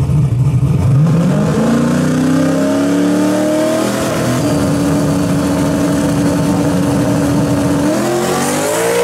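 A turbocharged V8 drag car revs and holds high revs on the start line.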